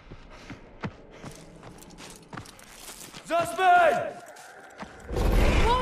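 Footsteps rustle through undergrowth.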